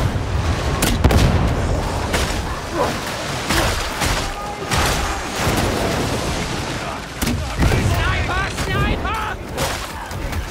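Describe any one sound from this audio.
Explosions boom and roar.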